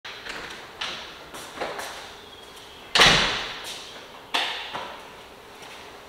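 Footsteps echo on a hard floor in a large, empty room.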